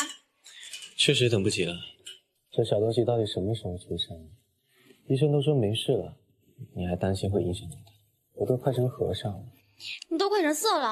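A young man speaks softly and playfully up close.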